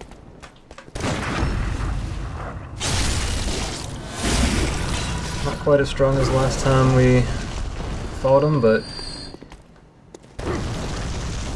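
Game sword slashes and impacts clang.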